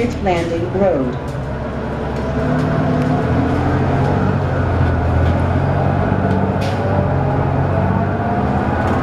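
A bus engine hums and drones steadily as the bus drives along.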